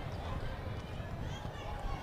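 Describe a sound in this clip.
A young woman shouts with joy.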